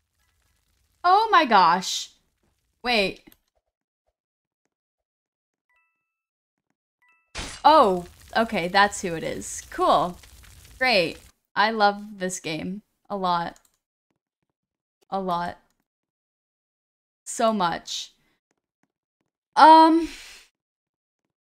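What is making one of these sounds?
A young woman talks with animation into a close microphone, with pauses.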